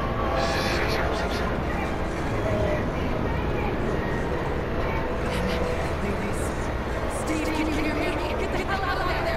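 A young woman speaks calmly and firmly, close by.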